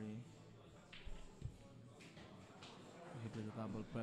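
Pool balls knock together on the table.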